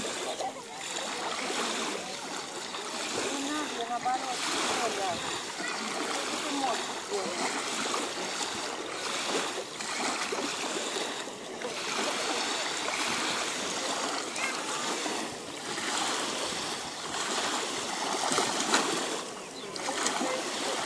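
Small waves wash gently onto the shore in slow, rising and falling surges.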